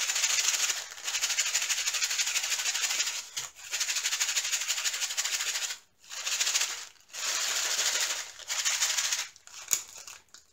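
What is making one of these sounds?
A plastic bag crinkles and rustles between fingers.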